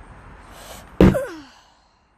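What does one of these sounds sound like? A plastic knob knocks against a hard surface.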